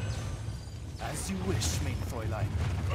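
A bright magical blast whooshes and shimmers.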